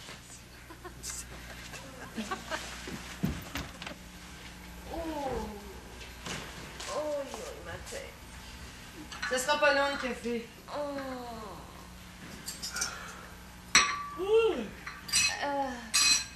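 A young woman speaks in an upset voice, close by.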